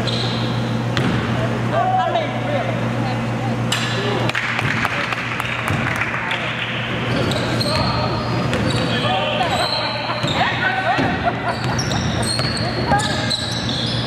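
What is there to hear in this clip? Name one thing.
Spectators chatter and call out around the court.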